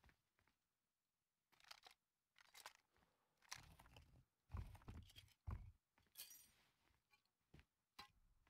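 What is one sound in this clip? Short clicks and rustling thuds sound as items are picked up and moved.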